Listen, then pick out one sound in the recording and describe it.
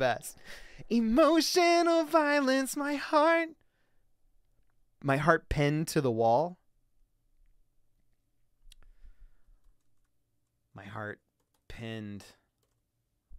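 A man sings a few held notes close to a microphone.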